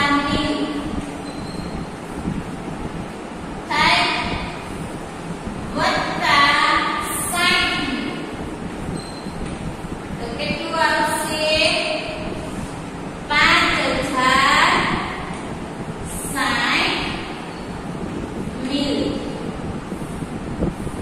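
A young woman speaks clearly and steadily nearby.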